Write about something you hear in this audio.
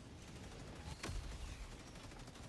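A heavy supply pod slams into the ground with a loud boom.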